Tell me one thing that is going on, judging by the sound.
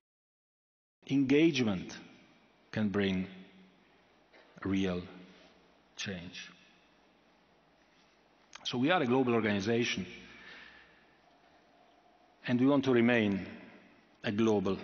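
A middle-aged man speaks slowly into a microphone, with long pauses.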